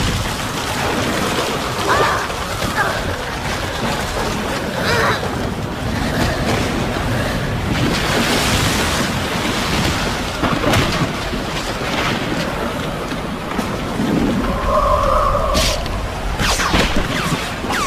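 Stone pillars crash down with a heavy rumble.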